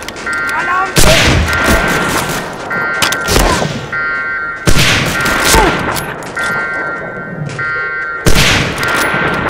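A rifle fires loud single shots with a ringing echo.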